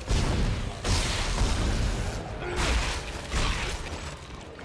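Loud gunfire and crashing bursts out in quick rushes.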